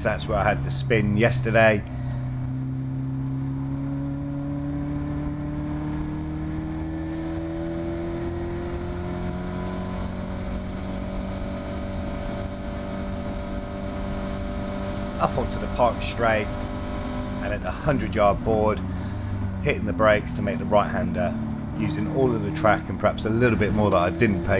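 A race car engine drones loudly, its pitch climbing steadily as it speeds up.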